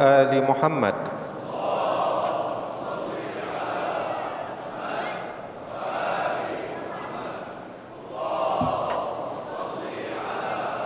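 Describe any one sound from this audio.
A large crowd of men murmurs and talks in a big echoing hall.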